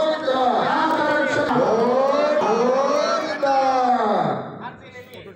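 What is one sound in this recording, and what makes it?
A man chants a prayer in a drawn-out singing voice close by.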